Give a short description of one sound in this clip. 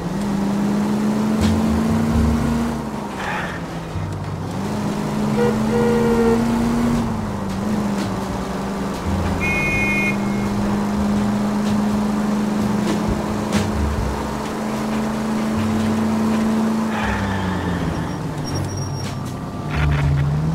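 A car engine revs and shifts through the gears.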